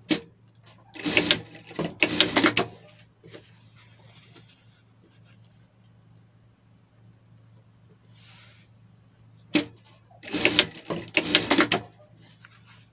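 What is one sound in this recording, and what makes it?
A sewing machine stitches in short, fast bursts.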